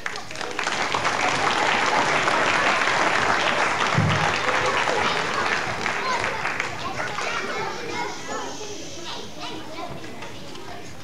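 A large group of children calls out and chatters loudly in a large echoing hall.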